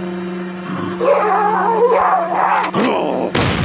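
A zombie growls and moans loudly.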